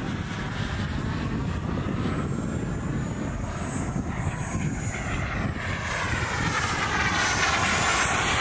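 A jet engine roars overhead, growing louder as the plane approaches.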